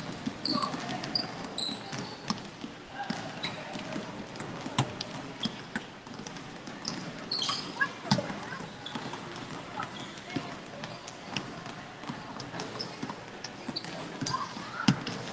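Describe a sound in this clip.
A basketball thumps on the floor now and then.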